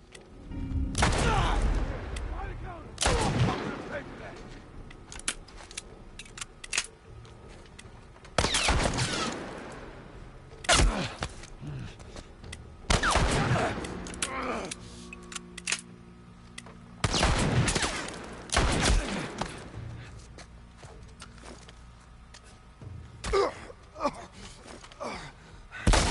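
Gunshots boom loudly and echo through a large room.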